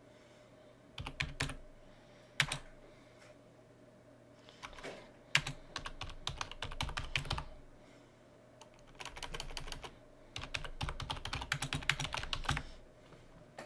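A keyboard clacks in quick bursts of typing.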